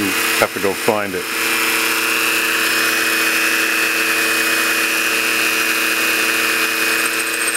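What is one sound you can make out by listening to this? A lathe hums as it spins.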